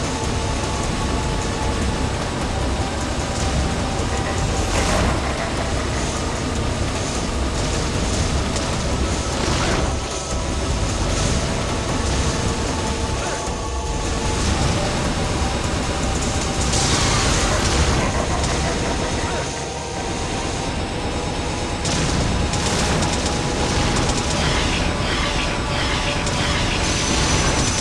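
Thunder cracks as lightning strikes.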